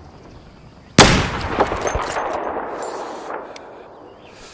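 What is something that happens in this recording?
A rifle fires a single loud shot that echoes away.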